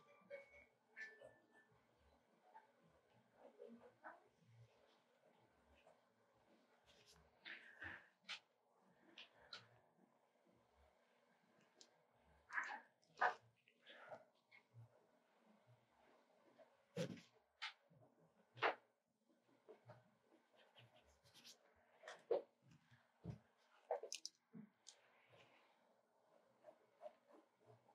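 A pencil scratches and scrapes across paper.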